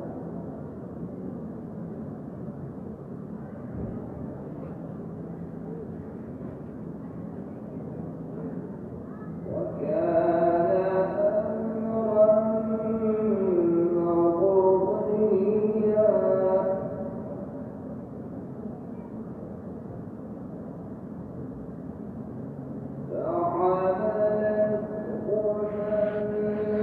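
A crowd murmurs softly in the distance.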